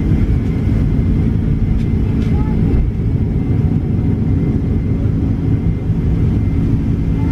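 Jet engines roar loudly and steadily as an airliner takes off.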